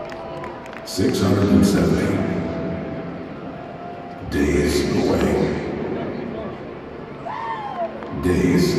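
Deep booming hits play over loudspeakers, echoing through a large domed stadium.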